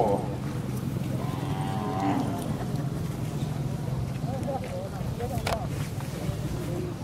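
An elderly man speaks into a microphone, amplified through loudspeakers outdoors.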